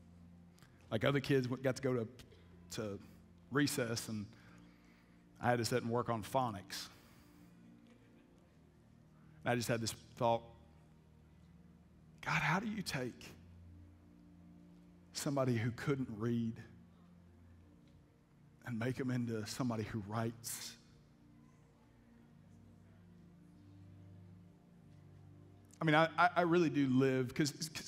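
A man speaks calmly into a headset microphone in short bursts with long pauses.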